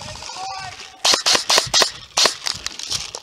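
An airsoft gun fires a quick burst of shots close by.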